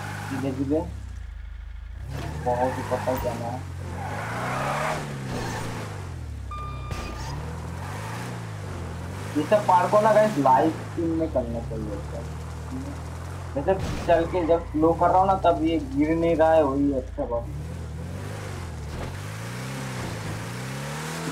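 A truck engine hums and revs up and down.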